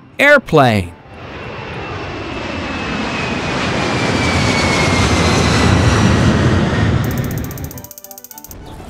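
A jet plane roars past overhead.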